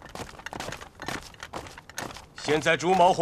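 Boots march in step on hard ground.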